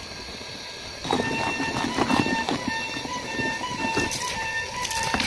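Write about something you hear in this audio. A hand swishes and splashes through soapy water.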